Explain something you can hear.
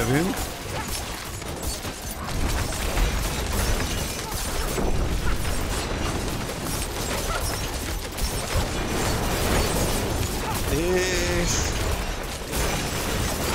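Game spells and blows crash and thud in a busy fight.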